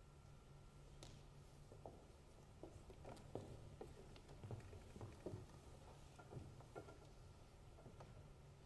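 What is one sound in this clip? Footsteps and soft knocks sound on a wooden stage in a quiet hall.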